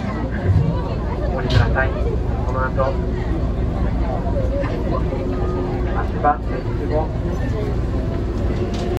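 A train's engine hums low and steady.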